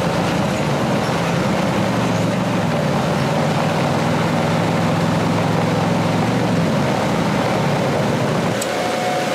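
A heavy tracked vehicle's engine rumbles steadily as it drives.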